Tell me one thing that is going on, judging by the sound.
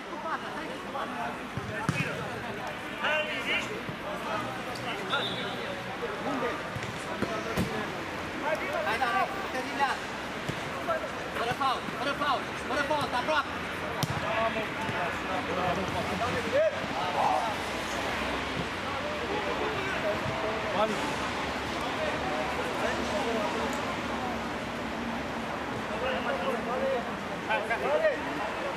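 Voices of men and onlookers call out across an outdoor pitch.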